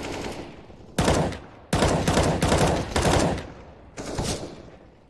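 A rifle fires short bursts of loud shots close by.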